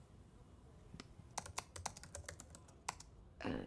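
Keys click quickly on a keyboard.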